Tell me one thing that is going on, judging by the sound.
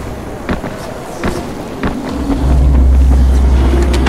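Footsteps thud quickly on pavement.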